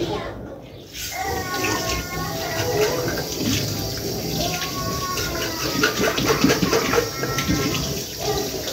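Water runs from a tap and splashes into a sink.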